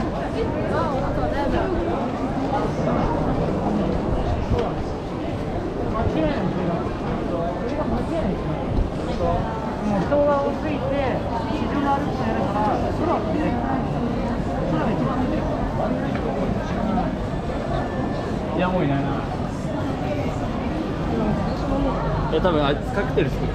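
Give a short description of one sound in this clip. Footsteps shuffle on pavement nearby.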